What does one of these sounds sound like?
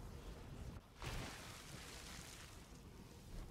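A loud rushing whoosh bursts out and slowly fades.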